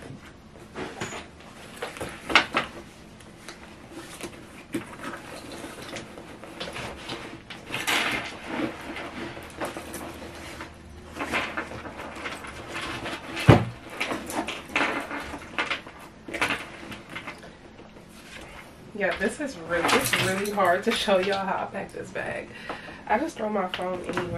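Bag contents rustle and bump as hands pack them.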